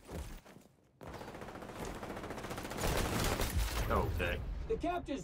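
Gunfire crackles rapidly from a video game.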